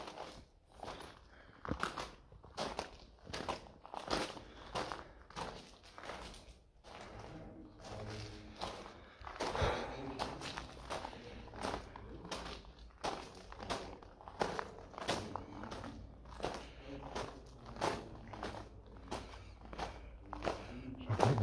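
Footsteps crunch steadily on a gritty floor, echoing in a tunnel.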